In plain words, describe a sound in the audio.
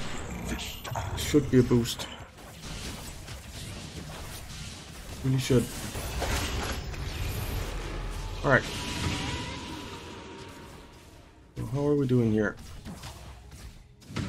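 Game battle effects clash and crackle.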